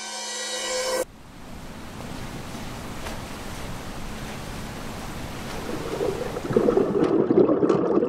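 Surf washes over the shore close by.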